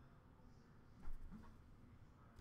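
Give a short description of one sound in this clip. A trading card taps down onto a stack of cards.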